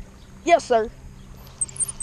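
A fishing reel clicks as its handle is turned.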